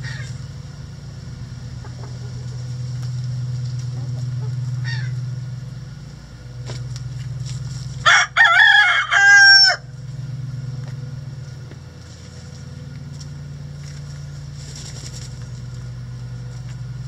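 Hens cluck softly.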